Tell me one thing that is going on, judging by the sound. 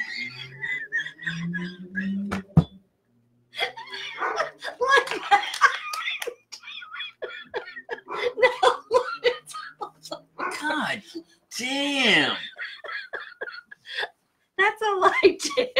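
A woman laughs loudly and helplessly into a microphone.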